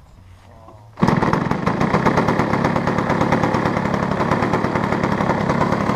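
A small model aircraft engine starts up and runs with a loud, steady buzz.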